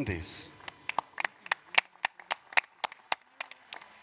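People applaud outdoors, clapping their hands.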